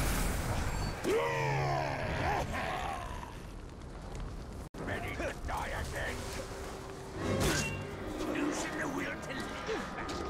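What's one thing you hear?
Fire crackles and roars.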